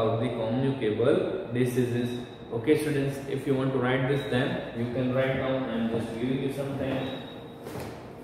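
A young man speaks calmly and clearly, close to a microphone.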